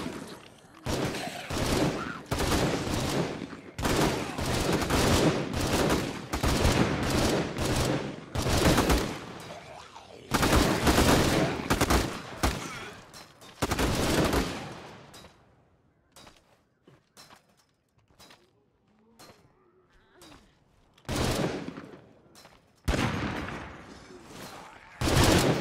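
Footsteps crunch on dirt ground.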